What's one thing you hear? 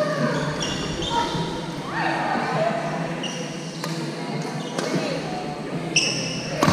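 Sports shoes squeak sharply on a wooden floor.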